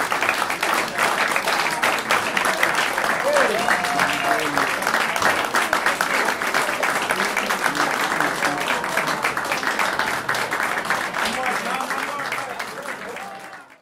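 An audience claps and applauds, fading out at the end.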